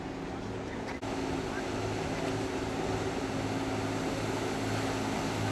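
A small boat's engine drones close by.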